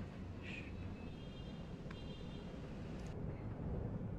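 A phone beeps softly as it is tapped.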